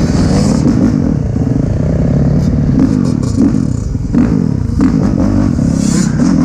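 Other dirt bike engines buzz and rev nearby.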